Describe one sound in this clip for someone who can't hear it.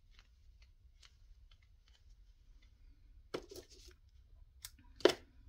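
Fabric ribbon rustles softly between fingers.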